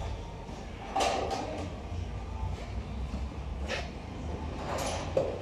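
Metal clanks as a heavy part is set down.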